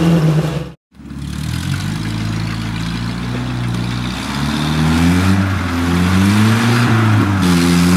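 An off-road car's engine revs.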